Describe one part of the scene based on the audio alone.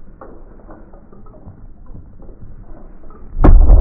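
A large inflatable boat drops and hits the ground with a heavy thud.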